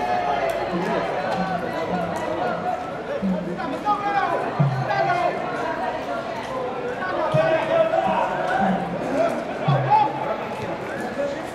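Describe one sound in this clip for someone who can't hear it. A crowd chants and cheers across an open stadium.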